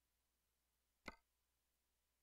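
A single short interface click sounds.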